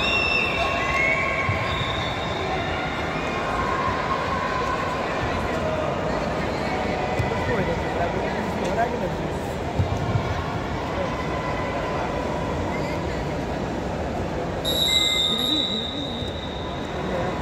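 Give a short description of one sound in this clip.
A crowd of men shouts and chatters in a large echoing hall.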